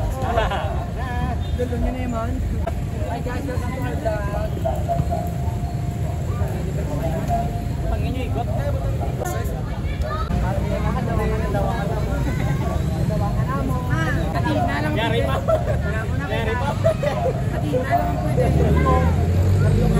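Several young men talk and call out outdoors.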